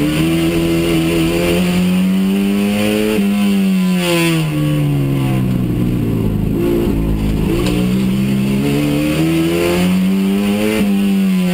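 A race car engine roars loudly from inside the cabin, revving up and down through the gears.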